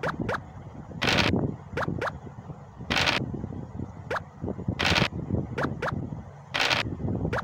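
A die rattles briefly as it rolls.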